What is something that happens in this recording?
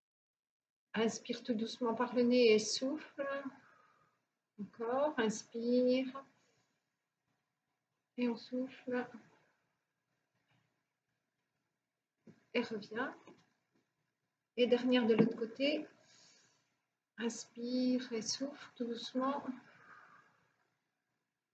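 A middle-aged woman speaks calmly and clearly, giving instructions in short bursts.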